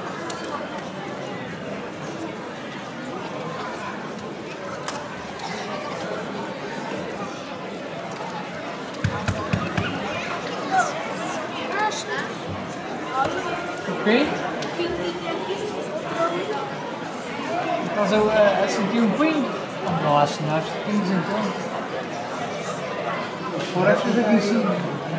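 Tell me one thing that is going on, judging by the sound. A crowd of onlookers chatters and shouts outdoors.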